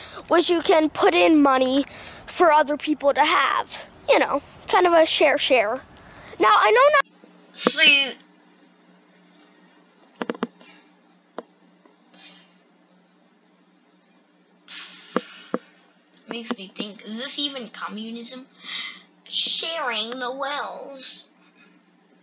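A young boy talks with animation close to the microphone.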